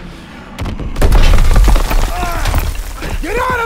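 Rubble crashes down with a heavy, booming rumble.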